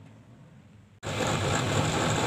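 A table saw blade spins with a loud whine.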